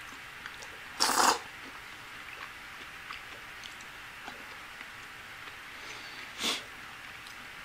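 A man slurps food loudly.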